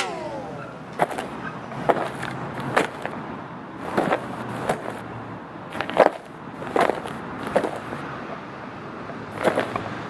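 Hard-soled dress shoes step on concrete.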